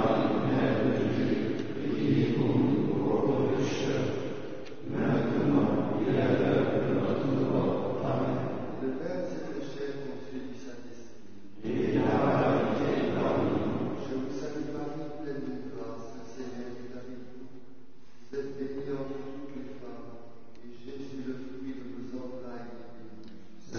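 A group of men chant together in unison, echoing in a large reverberant hall.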